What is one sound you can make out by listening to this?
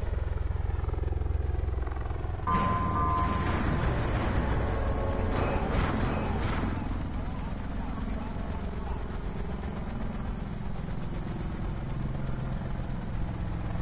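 Helicopter rotors thud low and steady as many helicopters fly together.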